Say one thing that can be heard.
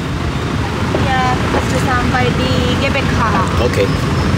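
A young woman speaks briefly close by.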